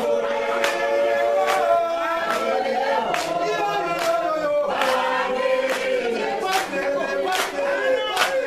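Hands clap in a steady beat.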